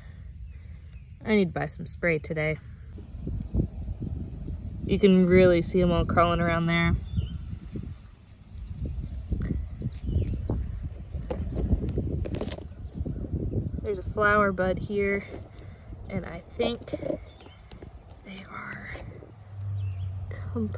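Leaves rustle softly as fingers handle a plant.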